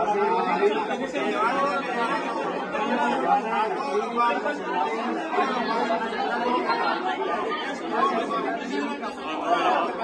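A man speaks firmly close by.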